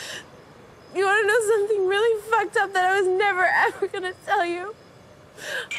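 A young woman cries and wails in a high voice.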